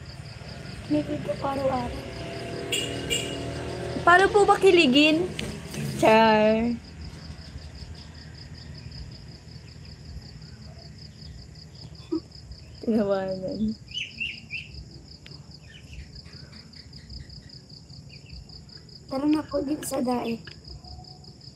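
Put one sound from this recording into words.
A young woman speaks with animation close to a phone microphone.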